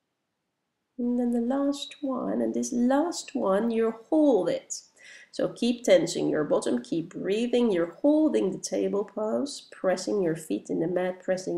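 A woman speaks calmly and steadily.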